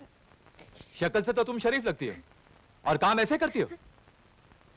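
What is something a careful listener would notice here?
A man speaks loudly and sternly nearby.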